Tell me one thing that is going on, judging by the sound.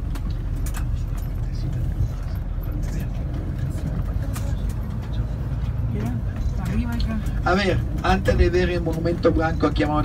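A vehicle's engine and tyres rumble steadily from inside while driving.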